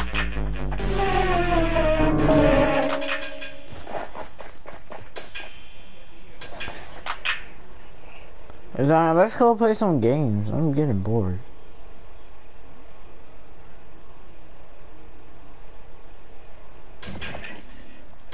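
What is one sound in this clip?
Short electronic game sound effects click and chime.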